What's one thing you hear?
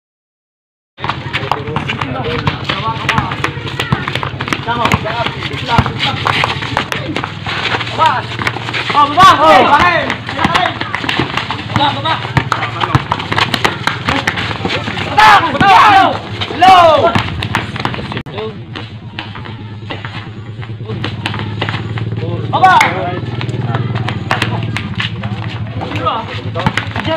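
Players' feet scuff and slap on the ground.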